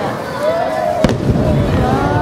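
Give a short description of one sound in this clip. A firework bursts with a deep, distant boom.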